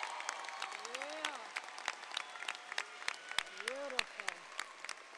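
A crowd claps and applauds in a large echoing hall.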